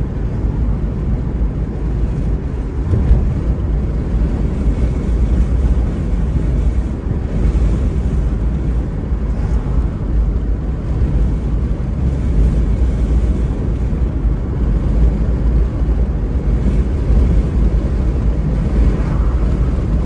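Wind rumbles against the car.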